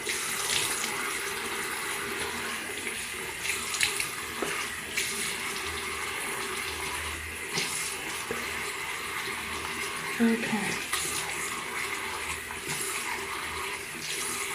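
Water splashes as hands rub and rinse a face close by.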